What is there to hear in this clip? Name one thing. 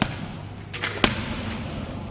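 A kick slaps against a heavy punching bag.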